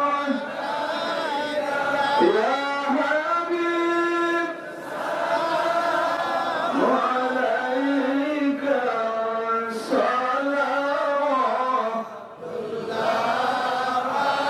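A man sings a long melodic chant through a loudspeaker, his voice echoing.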